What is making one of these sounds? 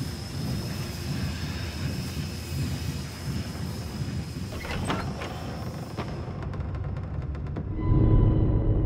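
A heavy cart rolls and rumbles over wooden boards.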